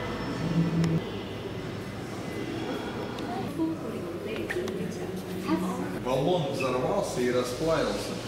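People chatter in a large echoing hall.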